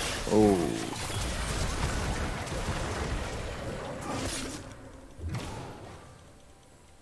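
Game sound effects of spells and hits burst loudly.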